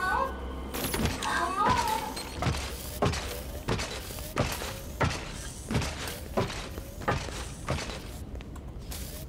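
Footsteps thud heavily on a hard floor at a steady pace.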